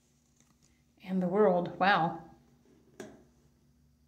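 A card is placed and slid onto a table.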